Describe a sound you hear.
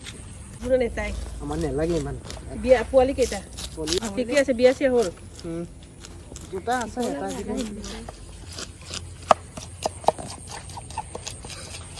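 A knife chops fish on a wooden board.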